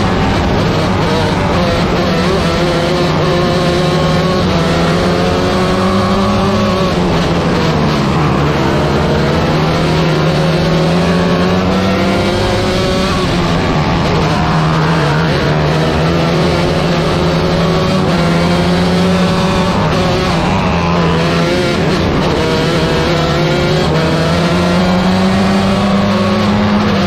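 A race car engine roars loudly up close, its pitch rising and falling as it accelerates and slows.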